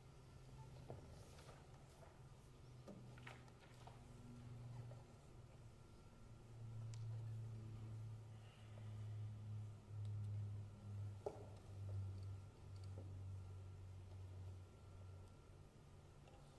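A cello plays low, slow sustained notes.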